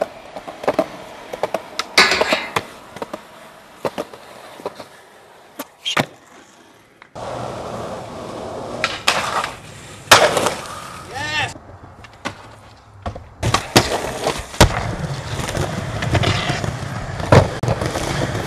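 A skateboard clatters and snaps against concrete.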